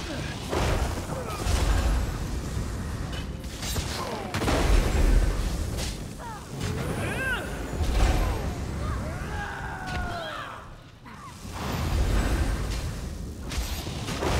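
Magic spells crackle and burst with loud whooshes.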